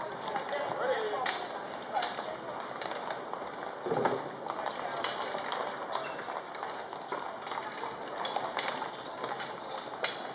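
Horses' hooves clop on a paved road.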